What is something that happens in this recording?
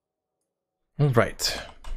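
A young man speaks suddenly and loudly into a close microphone.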